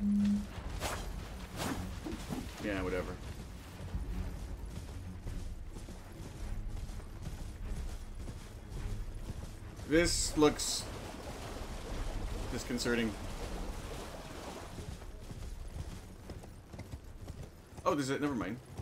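Horse hooves gallop steadily.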